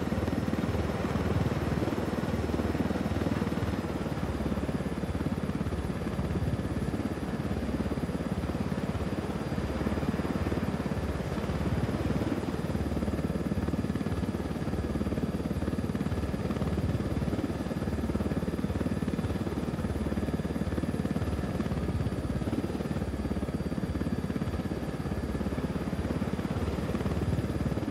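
A helicopter's rotor blades thump steadily and rapidly.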